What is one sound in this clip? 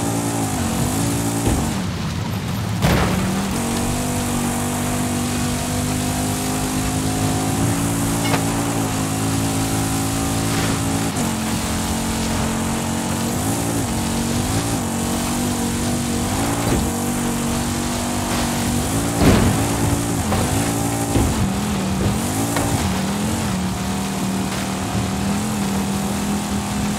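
Tyres rumble over rough grass and dirt, with occasional heavy thumps.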